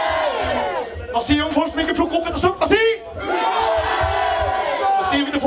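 A young man sings loudly into a microphone over a loudspeaker.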